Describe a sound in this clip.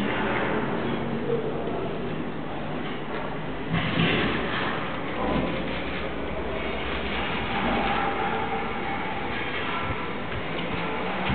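An elderly man recites a prayer aloud in an echoing space.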